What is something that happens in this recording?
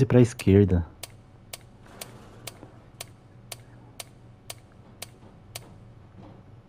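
A combination dial clicks steadily as it turns.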